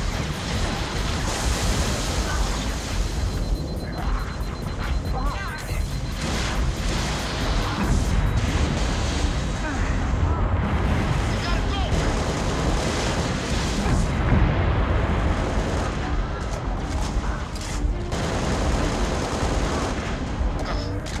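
Gunfire and explosions boom from a video game.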